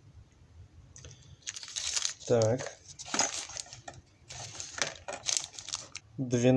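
Metal tools clink and scrape as they are handled.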